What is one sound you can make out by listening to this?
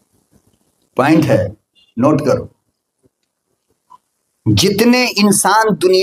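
An elderly man speaks forcefully into a microphone, heard through a loudspeaker with pauses between phrases.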